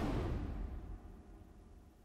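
A blade slashes with a roaring burst of flame.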